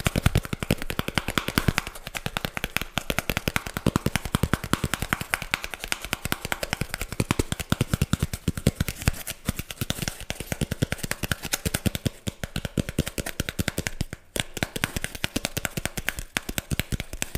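Fingers tap and scratch rapidly on a hard object close to a microphone.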